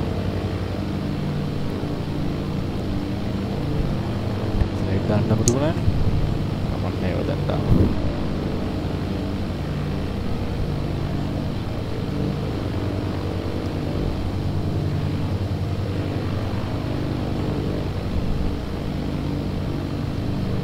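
A young man talks calmly into a headset microphone.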